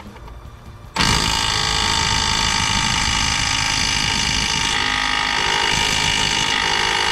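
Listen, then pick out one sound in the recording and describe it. A power tool whirs loudly and steadily on a bolt.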